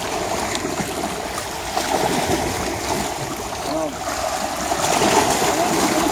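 Small waves lap and wash against rocks.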